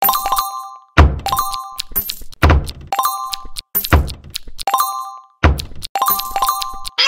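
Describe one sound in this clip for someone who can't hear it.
Deep electronic thumps land again and again.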